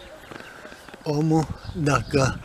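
An elderly man speaks close by, loudly and with animation.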